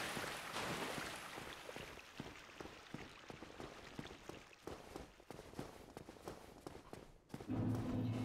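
Footsteps tap on stone in a quick, steady rhythm.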